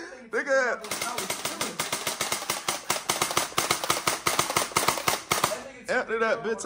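A toy blaster fires rapidly in bursts.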